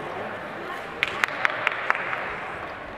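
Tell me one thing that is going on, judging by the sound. Skate blades click and knock sharply on the ice.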